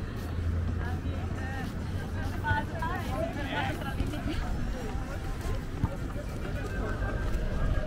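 Footsteps tap on a wooden boardwalk.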